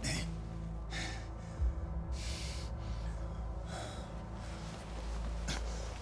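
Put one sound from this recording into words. A man cries out in pain.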